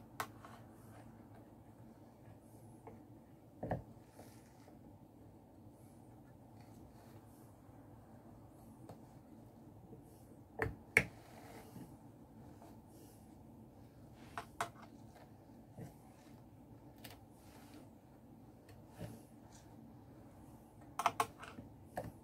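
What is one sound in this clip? Wooden parts of a drum carder knock and click now and then.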